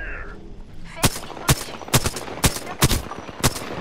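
Rapid gunshots ring out in sharp bursts.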